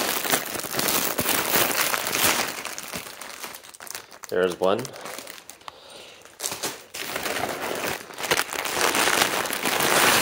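Plastic sheeting crinkles and rustles close by.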